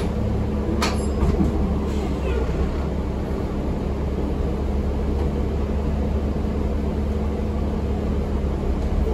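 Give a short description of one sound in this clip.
The bus rattles and creaks as it rolls along.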